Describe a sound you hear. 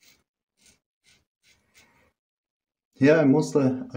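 A double-edge safety razor scrapes over lathered stubble.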